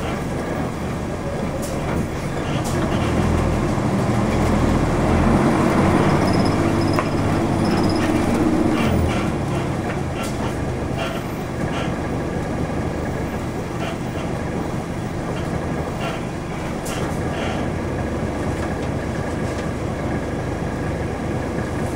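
A car engine drones close by, growing louder for a while and then settling to a quieter idle.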